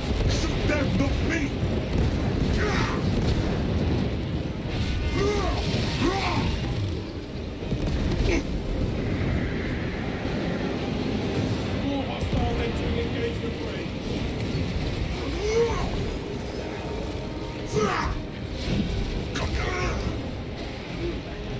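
Monsters screech and shriek.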